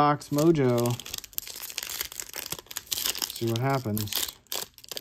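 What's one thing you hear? A plastic wrapper crinkles and tears as it is opened by hand.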